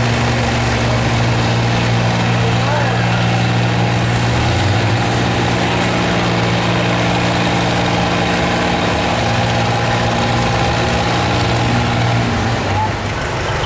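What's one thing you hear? A pulling tractor's engine roars loudly and steadily with a deep drone.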